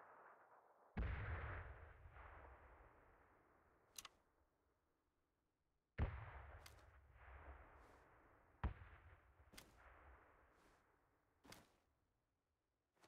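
A rifle fires single loud shots that echo and roll away.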